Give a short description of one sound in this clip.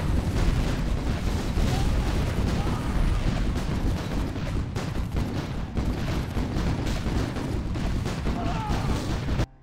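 Explosions boom and rumble again and again.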